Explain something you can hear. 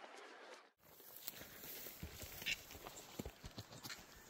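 Footsteps crunch on dry grass and twigs.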